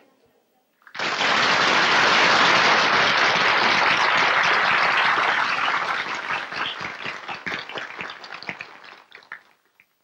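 An audience applauds loudly in a large hall, then the clapping fades.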